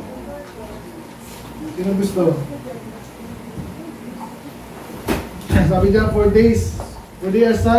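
A man speaks through a microphone, preaching with rising emphasis.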